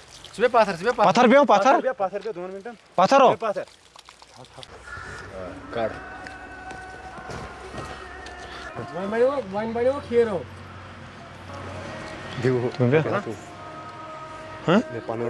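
A young man talks loudly and with animation close by.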